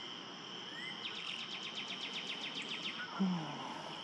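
A nearby bird of prey calls out in a quick series of sharp, high chirps.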